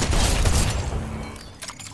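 A shot rings out in a video game.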